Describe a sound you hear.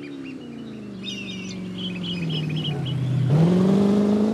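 Tyres squeal as a car slides through a bend.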